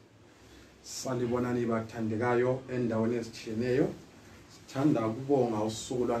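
A man reads aloud into a close microphone.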